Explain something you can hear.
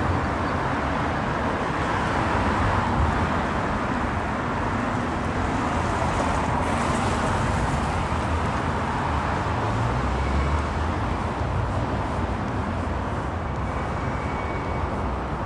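Cars drive by on a city street.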